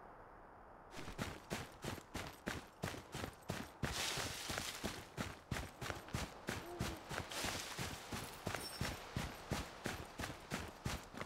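Footsteps run over rough ground.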